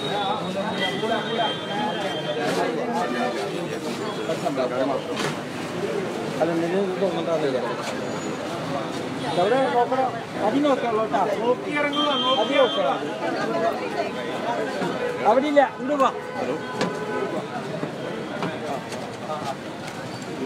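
A crowd of men and women talks and shouts over one another close by.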